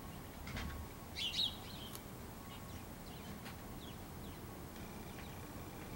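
A bird chirps and calls nearby outdoors.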